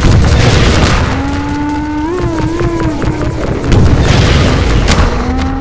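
A giant tripod machine lets out loud, warbling, rising cries.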